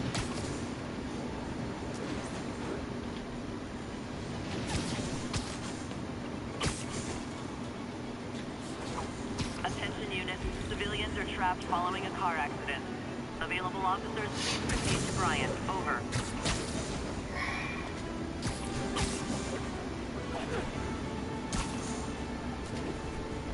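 Wind rushes steadily past during a fast swing through the air.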